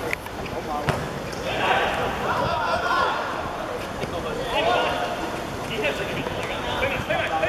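Men shout and call out across an outdoor court.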